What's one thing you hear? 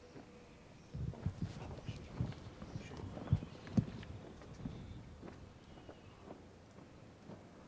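Boots march in step on paving stones.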